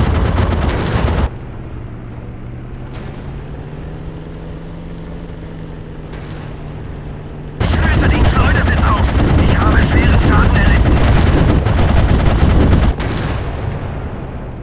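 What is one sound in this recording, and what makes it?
A biplane engine drones steadily.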